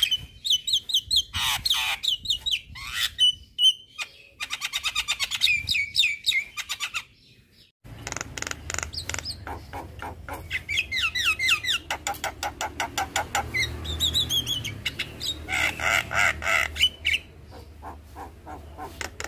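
A bird sings close by with loud, varied whistles and rapid chattering calls.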